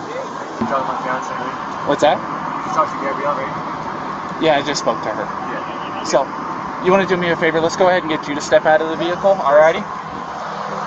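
A man answers from inside a car, heard a little farther off.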